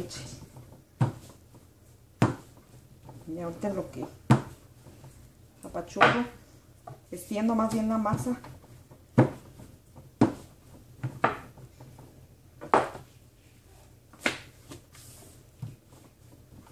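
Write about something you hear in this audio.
A rolling pin knocks and thumps against a table.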